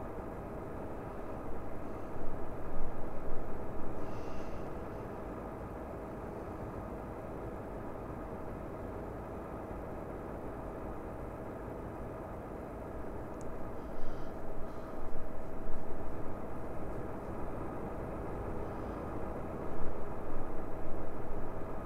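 A truck engine hums steadily while driving on a road.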